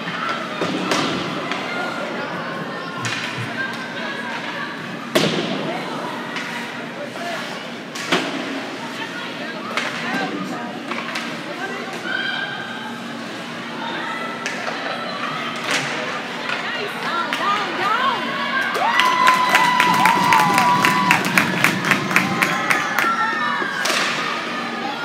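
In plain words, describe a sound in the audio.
Hockey sticks clack and pucks strike the boards.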